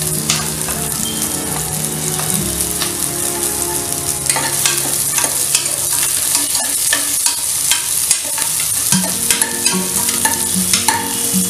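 Oil sizzles in a hot pot.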